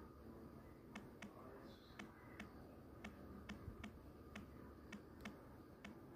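A phone keyboard clicks softly with each key tap.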